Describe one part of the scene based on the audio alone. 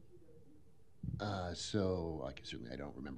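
A man speaks loudly and clearly into a microphone in a large room.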